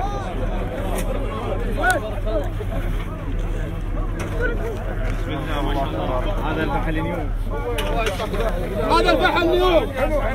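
A crowd of men chatter loudly all around, close by.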